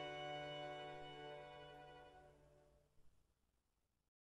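A string quartet plays a slow chord that fades away.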